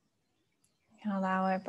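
A young woman chants a long, steady tone close by.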